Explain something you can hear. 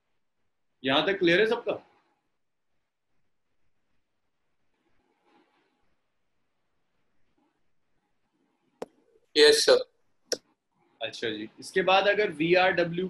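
A young man speaks calmly into a close microphone, pausing between phrases.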